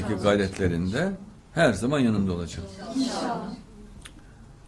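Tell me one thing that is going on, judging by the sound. A middle-aged man speaks with animation into a microphone.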